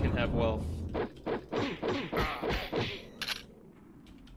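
Fists thud in a quick run of punches.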